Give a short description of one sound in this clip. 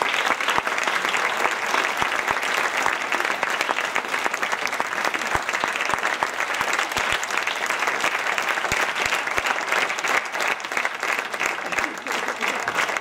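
An audience cheers.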